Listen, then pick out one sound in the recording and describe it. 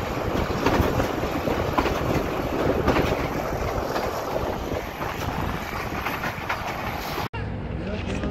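A passenger train's wheels clatter over the rails.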